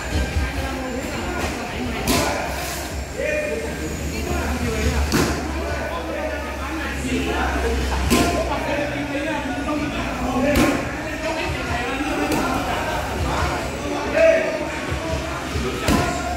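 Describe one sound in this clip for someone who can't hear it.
Gloved punches thump against pads in bursts.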